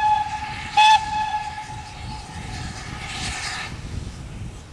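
A steam locomotive's whistle blows twice from a distance.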